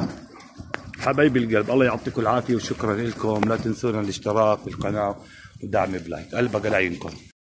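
Pigeons coo close by.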